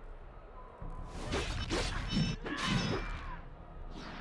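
Weapons strike and clash in a short fight.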